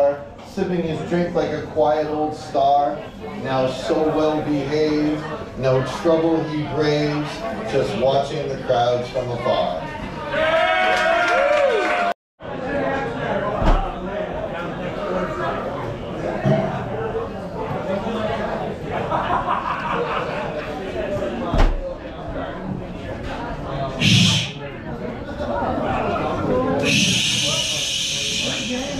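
People chatter nearby in a busy room.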